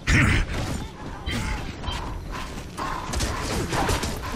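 Heavy boots thud on the ground as an armoured soldier runs.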